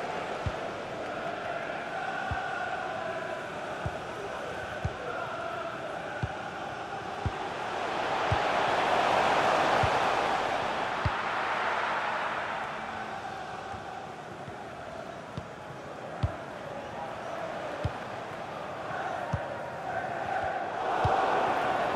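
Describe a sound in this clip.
A large stadium crowd roars steadily, swelling louder for a few seconds midway.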